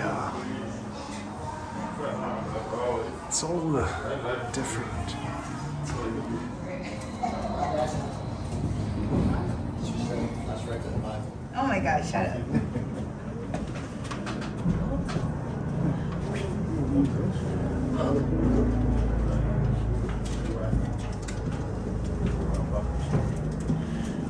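A cable car cabin hums and rumbles as it glides along its cable.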